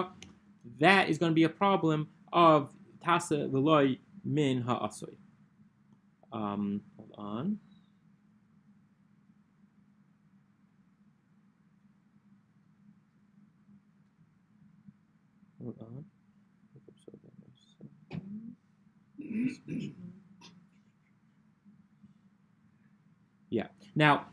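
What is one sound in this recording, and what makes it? A young man reads aloud in short bursts into a close microphone, with long pauses.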